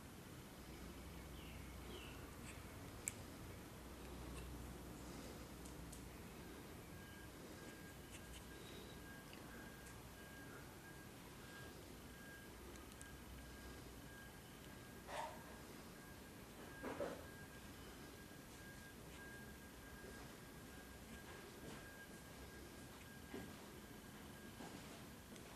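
Buttons on a plastic remote control click.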